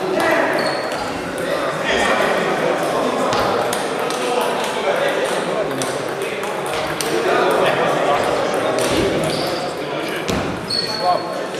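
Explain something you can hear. Men talk in the background of a large echoing hall.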